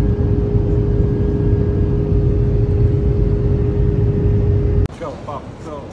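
An aircraft engine drones steadily inside a cabin.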